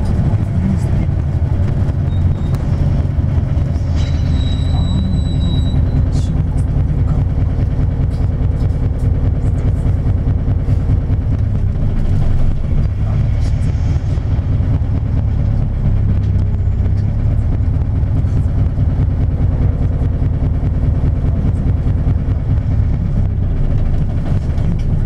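A car's engine rumbles steadily from inside as it drives along a road.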